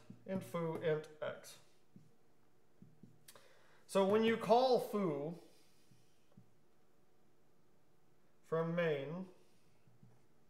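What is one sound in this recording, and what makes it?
A young man speaks calmly nearby in short bursts.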